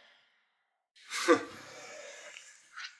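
A man snorts.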